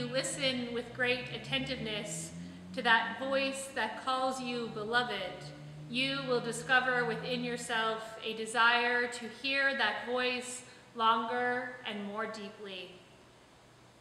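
An older woman sings along into a microphone.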